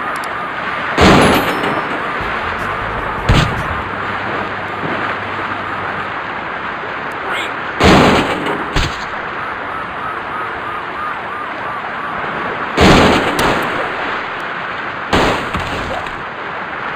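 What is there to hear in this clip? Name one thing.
Heavy thuds ring out as a vehicle is thrown and crashes to the ground.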